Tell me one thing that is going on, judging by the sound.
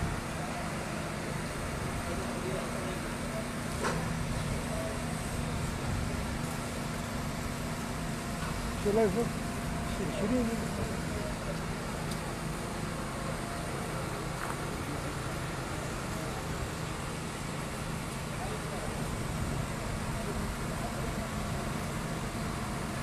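A fire engine's motor idles with a steady low rumble nearby.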